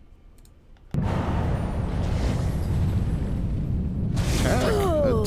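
A magic spell whooshes and crackles.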